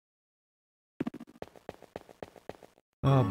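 Quick light footsteps patter in a video game.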